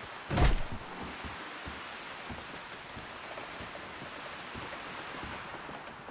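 Boots thud slowly on wooden floorboards.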